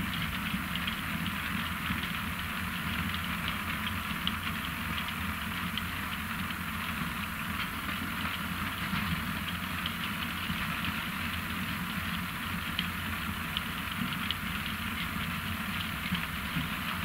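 Beets tumble and rattle along a conveyor into a trailer.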